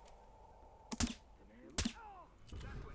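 A silenced rifle fires with a sharp muffled crack.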